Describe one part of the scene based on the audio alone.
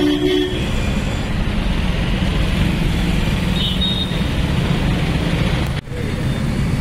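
Traffic rumbles past on a busy street outdoors.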